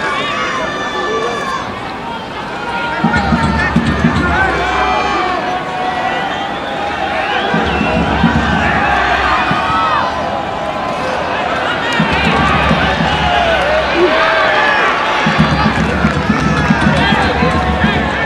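A large crowd cheers and chatters outdoors.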